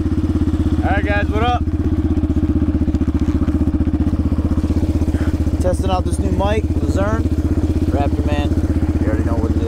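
A man talks cheerfully up close over the engine.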